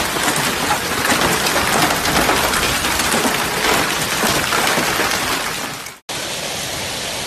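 Heavy hail pours down and patters densely on the ground.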